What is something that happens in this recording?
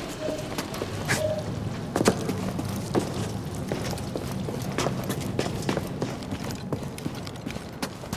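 Footsteps scrape over rock.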